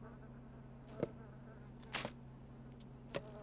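Short interface clicks sound a few times.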